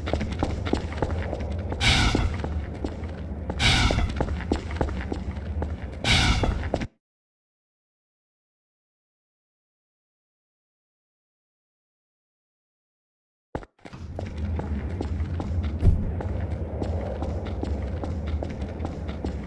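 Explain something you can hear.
Footsteps thud on a concrete floor.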